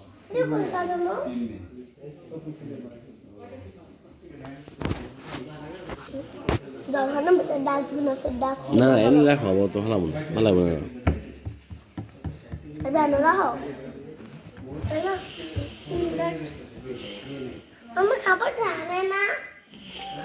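A small child talks in a high voice close by.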